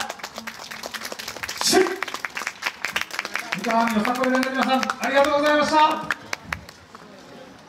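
Wooden hand clappers clack rapidly in rhythm.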